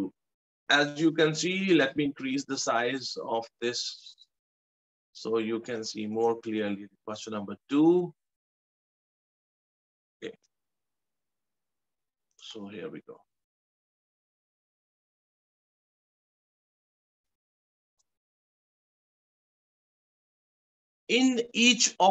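An elderly man speaks calmly into a microphone, explaining.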